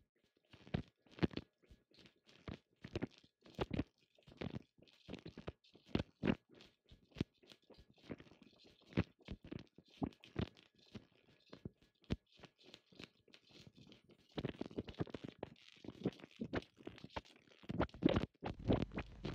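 Electric sparks snap and crackle sharply between two wires, again and again.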